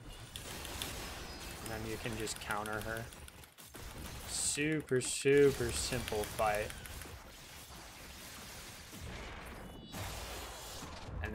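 Video game punches and slashes thud and whoosh.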